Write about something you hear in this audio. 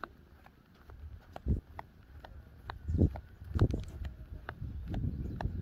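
Horses' hooves thud softly on sand.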